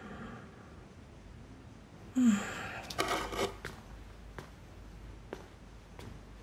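A glass clinks against a wooden table.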